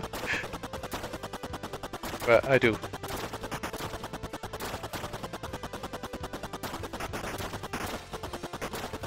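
Rapid electronic shots fire steadily in a retro video game.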